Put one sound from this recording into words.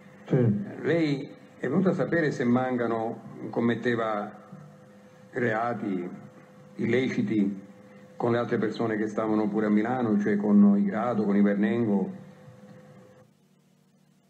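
An elderly man speaks calmly and steadily, in short phrases with pauses.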